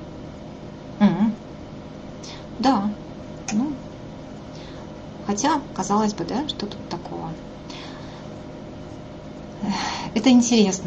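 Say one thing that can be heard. A woman speaks calmly in short bursts through an online call.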